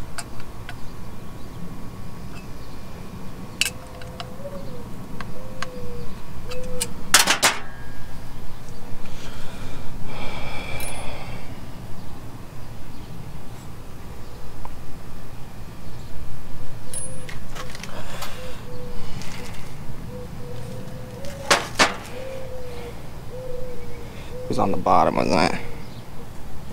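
Metal parts click and clank sharply.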